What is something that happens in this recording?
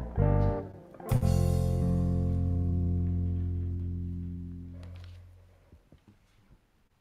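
A band plays a final chord on electric guitars and drums that rings out and fades.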